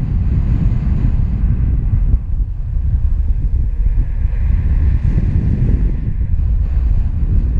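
Wind rushes loudly and steadily past a microphone in flight.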